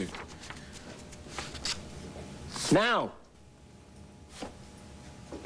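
A young woman speaks with irritation.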